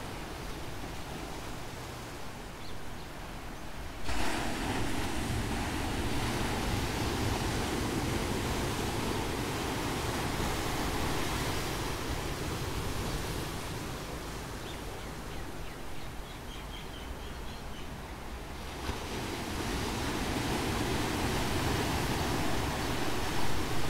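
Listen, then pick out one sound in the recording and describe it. Waves crash and wash over rocks close by.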